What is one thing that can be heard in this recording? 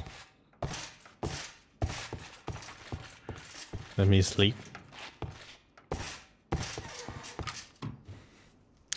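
Footsteps thud steadily on wooden floorboards.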